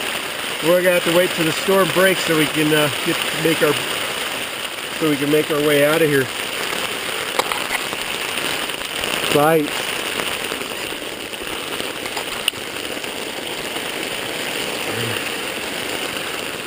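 Rain patters steadily on a tent.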